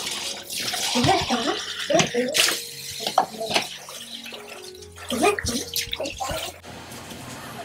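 Dishes clink and knock together.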